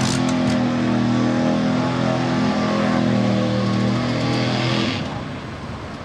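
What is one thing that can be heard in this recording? An engine roars loudly as a truck drives through mud.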